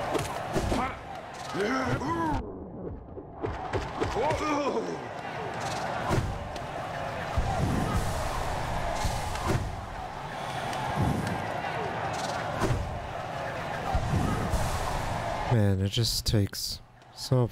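Sharp slashes and impacts hit repeatedly.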